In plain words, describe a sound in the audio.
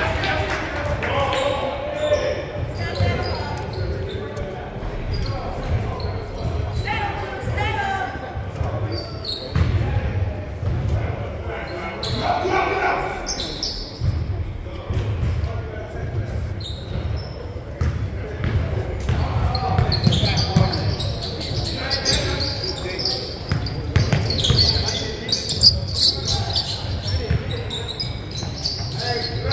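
Voices of players and spectators echo around a gym.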